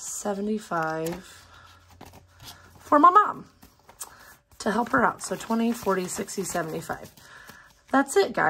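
Paper banknotes rustle and flutter as they are counted by hand.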